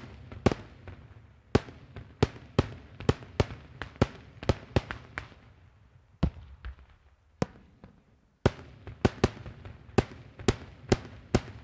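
Fireworks burst overhead with sharp, loud bangs in quick succession, echoing across open ground.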